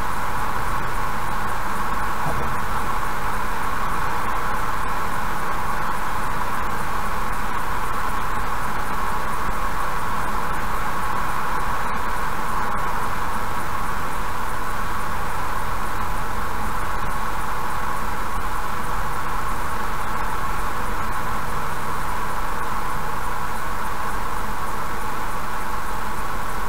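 A car drives steadily along a highway, its tyres humming on the road.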